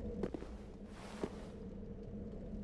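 A burst of fire flares up with a whoosh.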